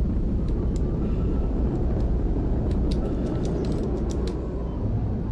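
Sharp hits and bursts crack repeatedly in a game fight.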